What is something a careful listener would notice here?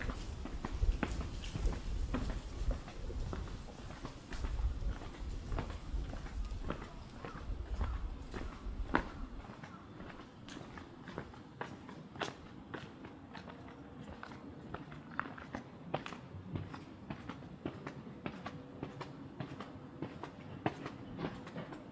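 Footsteps tap on concrete steps outdoors.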